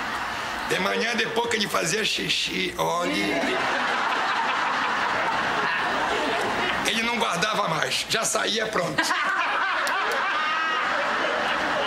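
An audience laughs and applauds steadily.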